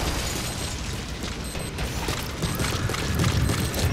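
Footsteps run on a metal floor.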